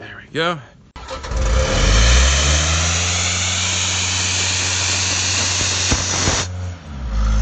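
Compressed air hisses loudly from a hose.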